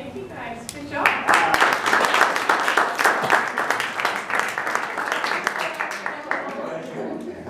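An audience applauds loudly in a room.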